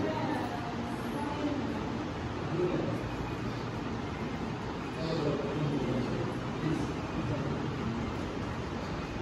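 Many people murmur and chatter quietly in a room.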